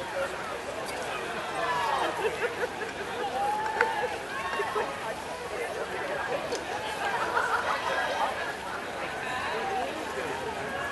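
A crowd of people shout and cheer outdoors from a distance.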